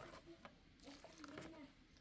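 Liquid pours and splashes into a plastic bowl.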